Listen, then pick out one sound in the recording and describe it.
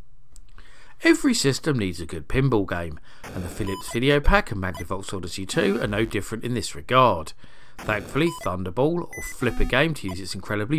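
A retro pinball video game plays quick electronic beeps and bloops.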